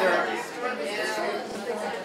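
A young boy talks with a woman nearby.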